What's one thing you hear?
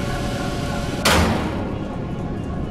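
A burst of fire flares up with a sudden whoosh.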